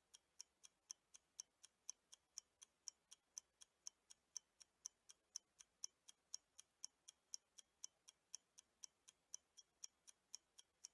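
A timer ticks quickly and steadily.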